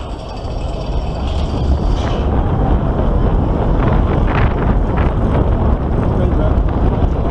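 Wind rushes past loudly as the ride picks up speed.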